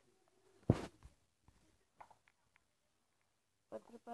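Billiard balls clack together as a rack is broken.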